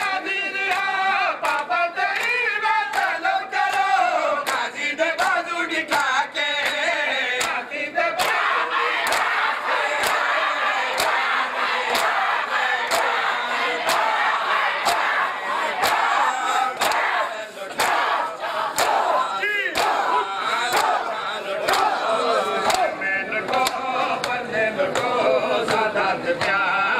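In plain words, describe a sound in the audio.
Men beat their bare chests with their hands in a steady rhythm.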